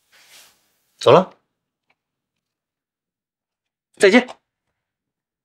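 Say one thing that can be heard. A young man speaks in short bursts close by.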